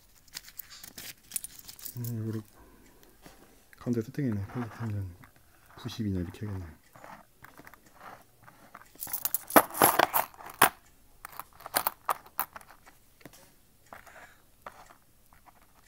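Metal coins clink and scrape against each other.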